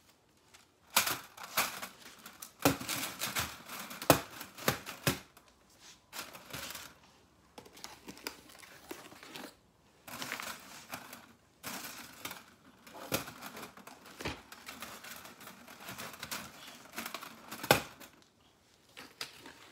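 Thin metal panels clatter and clank as they are unfolded.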